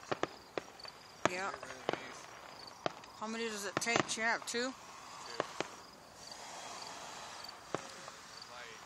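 Fireworks bang and pop at a distance outdoors.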